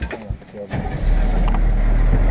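An engine rumbles low as a truck starts to move.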